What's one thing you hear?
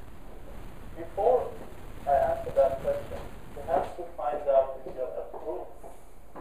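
A man speaks calmly through a microphone, heard as if from a loudspeaker.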